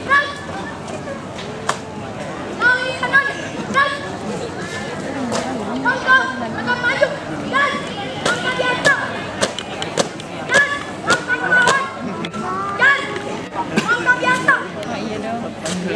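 Shoes stamp on hard ground in a marching rhythm.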